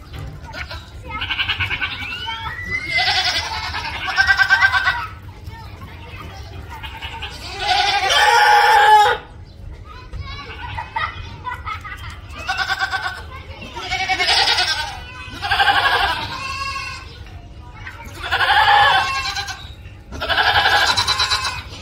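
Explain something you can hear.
A goat bleats loudly and repeatedly, close by.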